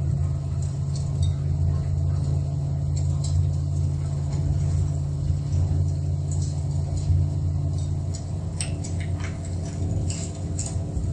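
A car engine rumbles low and steady from inside the cab.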